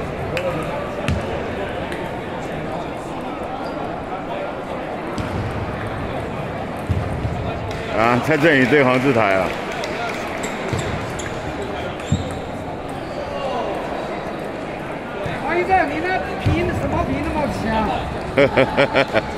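A table tennis ball clicks against paddles and a table.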